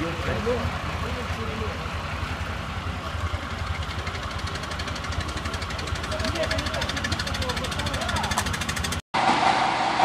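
A car engine idles and rumbles close by.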